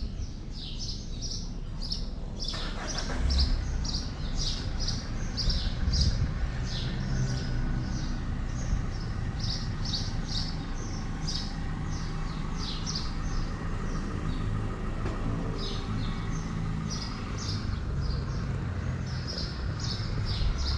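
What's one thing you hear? A hand rubs softly through a cat's fur.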